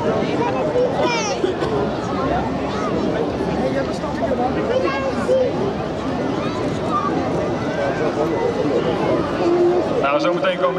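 Children shout and squeal in a crowd.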